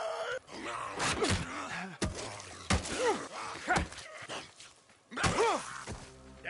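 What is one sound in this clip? Heavy blows thud in a close fight.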